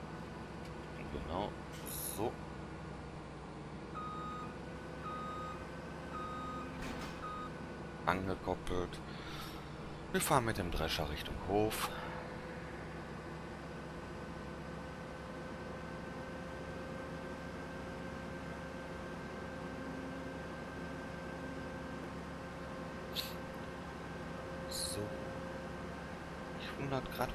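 A harvester engine hums steadily.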